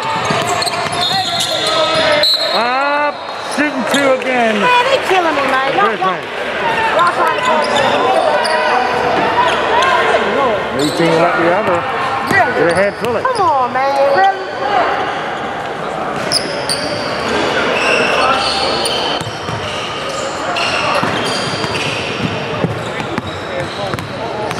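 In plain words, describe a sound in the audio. Young men and spectators chatter and call out across the hall.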